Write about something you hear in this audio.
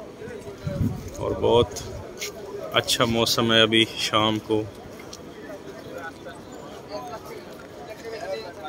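A crowd of people murmurs outdoors.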